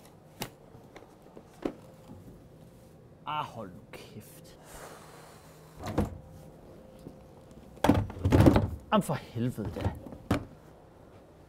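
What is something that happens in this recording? A suitcase knocks and thuds as it is lifted and set down.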